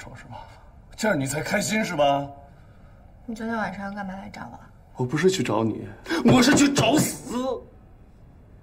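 A man speaks sharply and with animation nearby.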